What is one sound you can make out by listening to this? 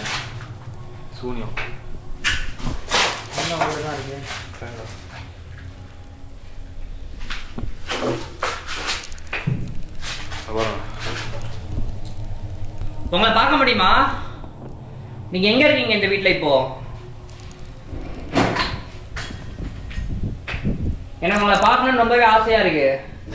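A young man speaks in a hushed voice close by.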